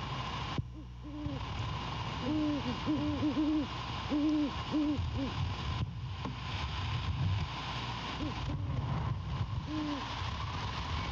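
An owl hoots softly in a low, repeated pattern.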